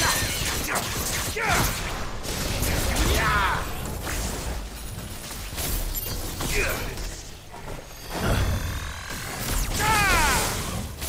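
Sword blades swish and clash in rapid strikes.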